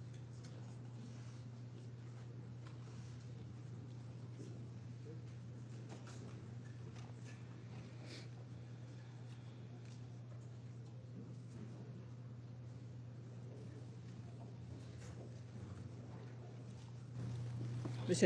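A crowd murmurs quietly in a large hall.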